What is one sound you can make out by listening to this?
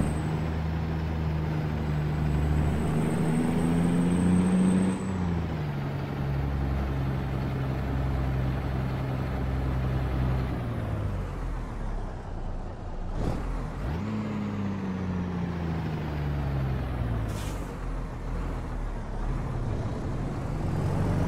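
A heavy truck engine rumbles, revving up and dropping as the gears change.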